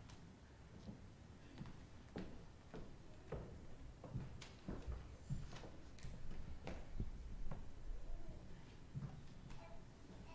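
Footsteps knock on a wooden floor in a large echoing room.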